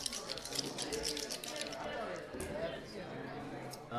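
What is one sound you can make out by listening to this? Dice rattle and clatter onto a table.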